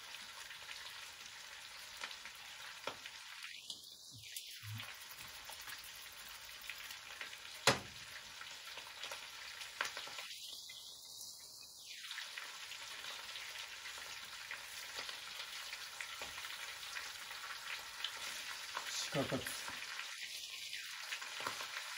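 A utensil clinks against a pan.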